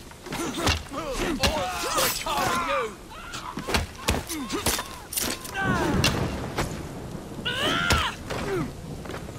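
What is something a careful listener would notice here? Fists thud in a quick flurry of blows.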